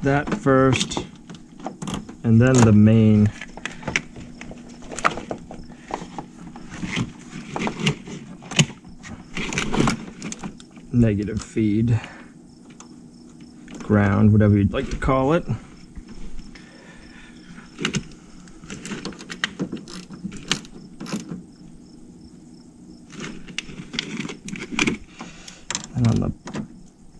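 Plastic connectors click and wires rustle as hands work on them close by.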